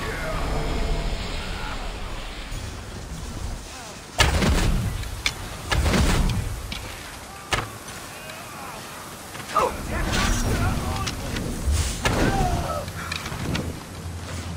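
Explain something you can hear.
A bowstring snaps as arrows are loosed.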